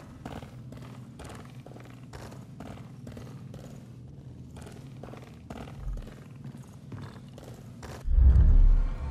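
Footsteps crunch steadily on rocky ground.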